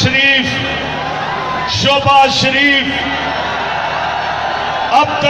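A huge crowd cheers and roars outdoors.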